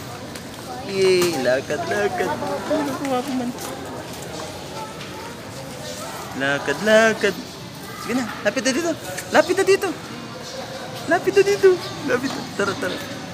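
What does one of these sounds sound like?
A baby babbles and coos.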